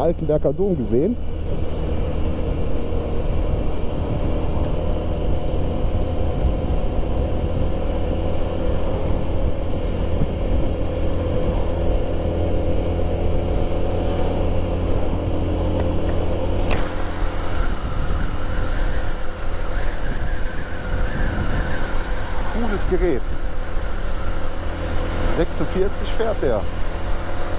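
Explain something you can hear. Wind rushes past loudly, outdoors.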